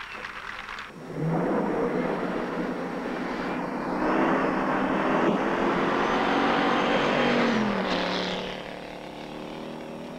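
A sports car engine roars as the car speeds off and fades away.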